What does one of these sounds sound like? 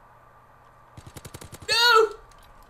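A submachine gun's mechanism clicks as it is reloaded.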